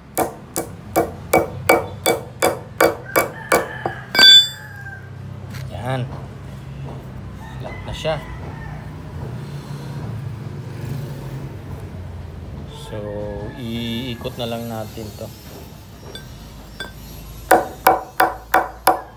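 A hammer strikes metal on a wooden block in quick, ringing blows.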